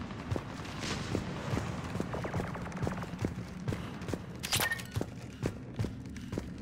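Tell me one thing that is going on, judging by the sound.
Heavy boots thud quickly and evenly on a hard metal floor.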